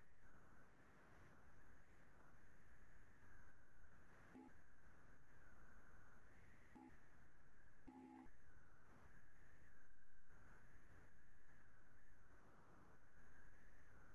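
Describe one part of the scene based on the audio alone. A man speaks quietly through a computer microphone.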